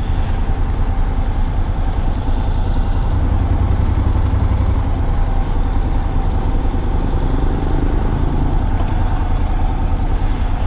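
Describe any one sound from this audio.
A motorcycle engine idles close by with a steady low rumble.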